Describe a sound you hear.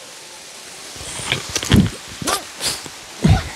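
Footsteps scrape and crunch on rock and dry leaves nearby.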